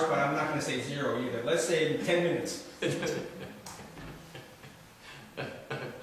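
A middle-aged man speaks calmly and warmly into a microphone, close by.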